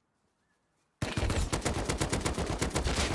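A rifle fires a rapid burst of shots up close.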